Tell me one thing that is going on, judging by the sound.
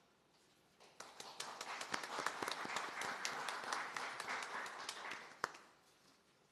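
A small group applauds.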